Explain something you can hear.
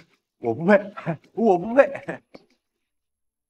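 A young man speaks close by in an upset, pleading voice.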